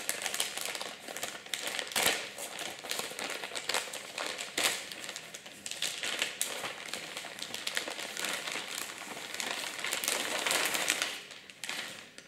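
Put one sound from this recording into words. Plastic wrapping crinkles and rustles.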